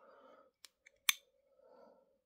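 A lighter lid clicks open.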